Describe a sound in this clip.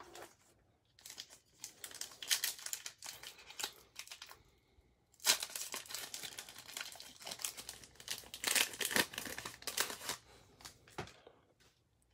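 A foil wrapper crinkles loudly as it is torn open.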